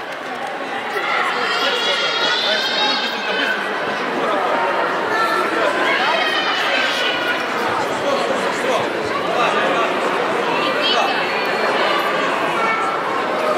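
A crowd of children cheers and shouts in a large echoing hall.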